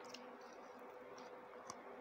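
Fingers scrape food from a plate.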